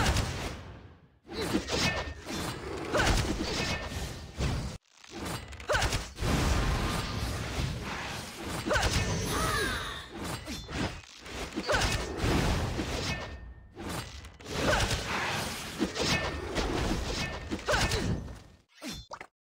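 Cartoon weapons clash and blows thud in a fast battle.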